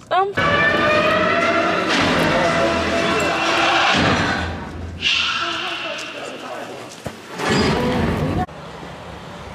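A film soundtrack plays loudly over loudspeakers.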